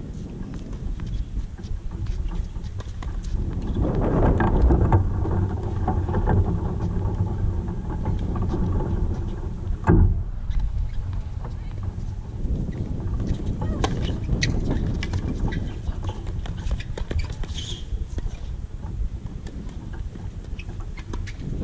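Wind rumbles across the microphone outdoors.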